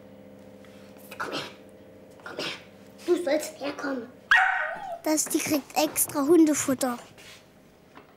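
A young girl talks and squeals close by.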